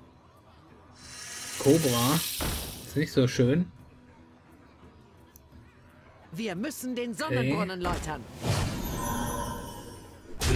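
Magical whooshes and chimes ring out in a video game.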